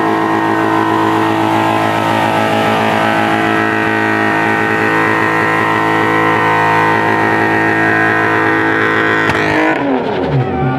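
Spinning rear tyres squeal on asphalt.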